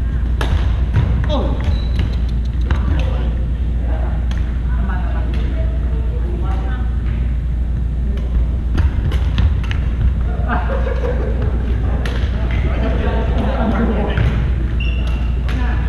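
Men call out to each other across a large echoing gym.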